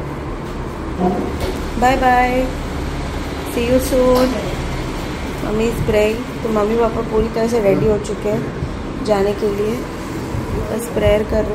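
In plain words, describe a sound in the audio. A middle-aged woman talks nearby with animation.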